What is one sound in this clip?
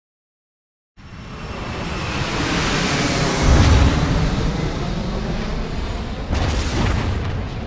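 A large jet plane's engines roar loudly.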